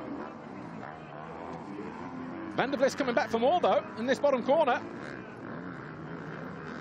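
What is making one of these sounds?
Motorcycle engines rev and whine as dirt bikes race.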